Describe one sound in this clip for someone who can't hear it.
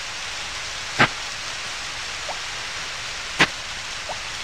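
A sharp swishing hit of a tool sounds twice.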